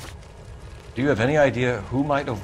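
A man asks a question in a calm, low voice.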